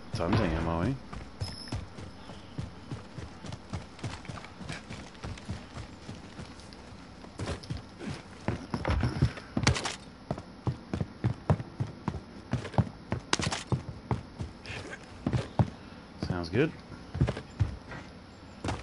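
Footsteps run quickly over ground and wooden floors.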